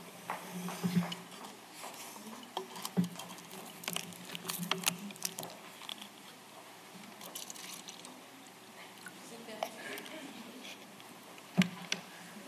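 A plastic bottle crinkles and clicks in a man's hands.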